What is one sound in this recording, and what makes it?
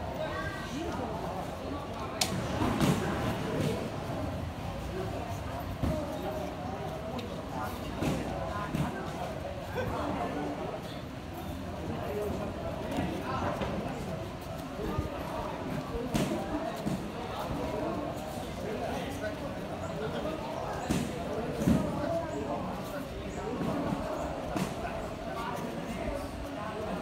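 Bare feet thud and shuffle on a padded mat.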